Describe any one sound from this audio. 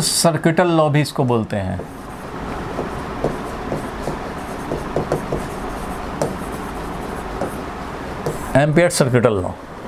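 A marker squeaks on a board as someone writes.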